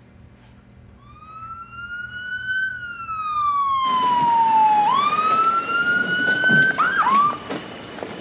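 An ambulance siren wails, rising and falling.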